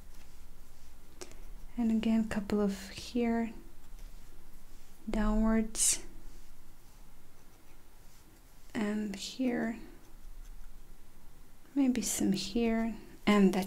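A brush dabs and strokes softly on paper.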